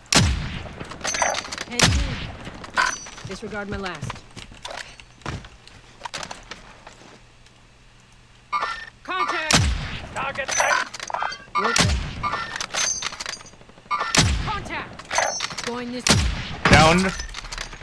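Sniper rifle shots crack loudly and echo.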